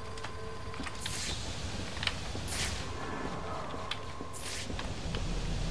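Sharp whooshing sweeps rush past several times.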